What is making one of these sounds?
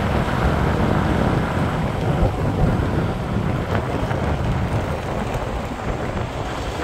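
Wind gusts steadily outdoors, rumbling against the microphone.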